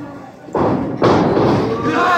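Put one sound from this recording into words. A wrestler crashes down hard onto a ring mat with a loud thud.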